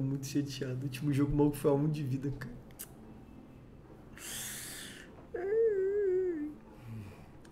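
A young man laughs over a microphone.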